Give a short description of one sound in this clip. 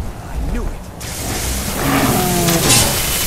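A crackling electric blast hisses loudly.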